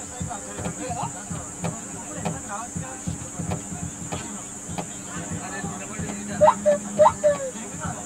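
Young men call out to one another in the distance outdoors.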